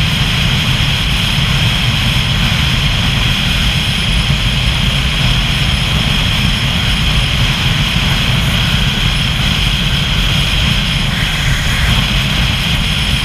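Wind rushes loudly past while riding fast on an open road.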